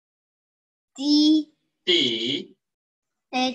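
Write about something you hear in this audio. A boy answers over an online call.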